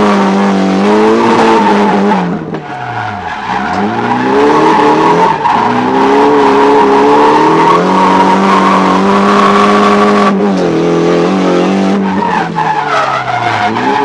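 A car engine roars loudly close by, revving up and down.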